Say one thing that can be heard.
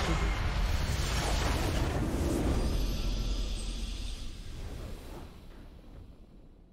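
A large structure explodes with a deep, rumbling blast.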